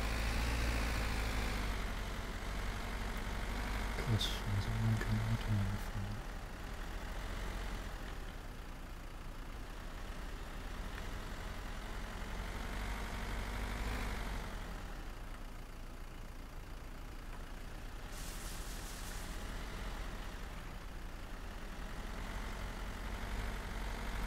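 A car engine hums steadily as a vehicle drives along a rough road.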